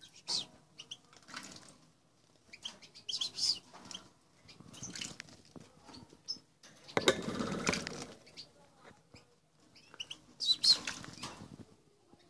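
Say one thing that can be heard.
A small bird chirps in short high calls.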